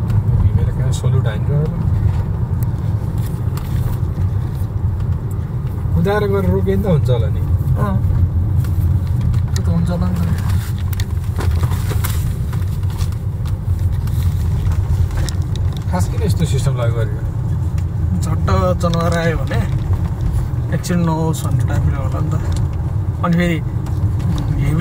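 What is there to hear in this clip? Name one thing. A car engine hums and tyres rumble steadily on the road from inside the car.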